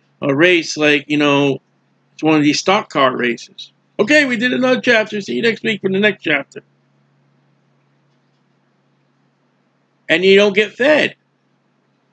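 A middle-aged man speaks calmly and closely into a microphone, in short bursts with pauses.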